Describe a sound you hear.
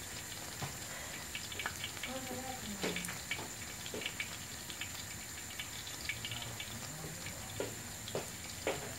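Batter sizzles and crackles softly in a frying pan.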